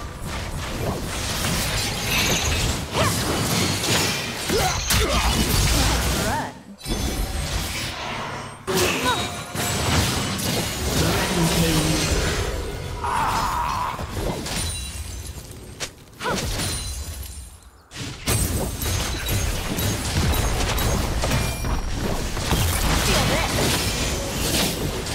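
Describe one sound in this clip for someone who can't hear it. Magic spells whoosh and crackle in a busy battle.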